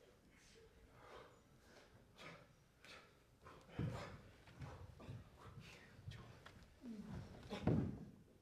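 Bare feet thud and slide on a stage floor.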